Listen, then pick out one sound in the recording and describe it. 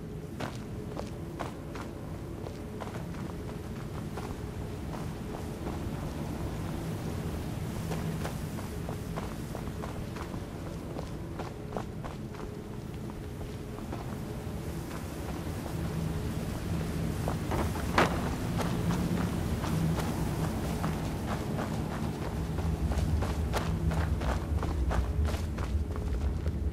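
Heavy armoured footsteps thud on stone floors.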